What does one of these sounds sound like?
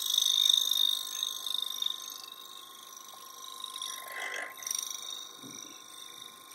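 A wood lathe spins with a steady whine.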